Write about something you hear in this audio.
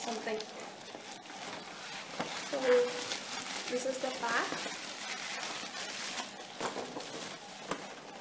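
Bubble wrap rustles and crinkles as it is pulled away.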